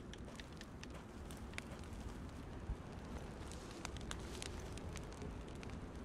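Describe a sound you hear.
Dry grass rustles softly as someone crawls through it.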